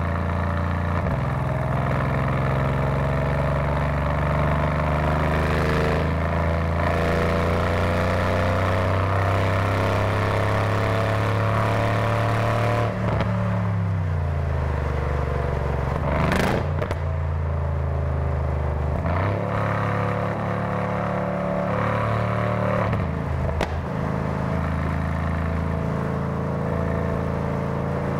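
A V8 sports sedan's engine drones from inside the car while cruising on a highway.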